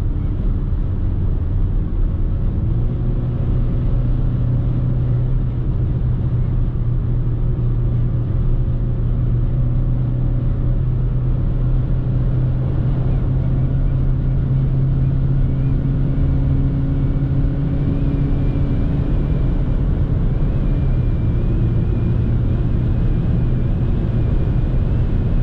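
A car engine hums steadily at speed inside the cabin.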